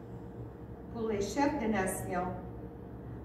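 A woman reads aloud into a microphone.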